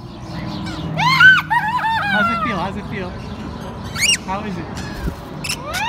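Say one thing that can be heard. Lorikeets screech and chatter shrilly.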